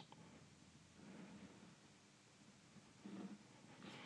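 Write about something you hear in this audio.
A pencil scratches along a ruler on paper.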